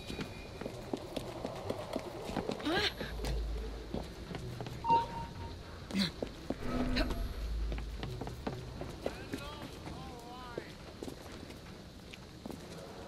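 An elderly man speaks with animation, heard close.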